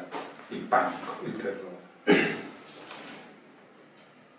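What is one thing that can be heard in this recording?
An older man speaks calmly into a microphone, reading out.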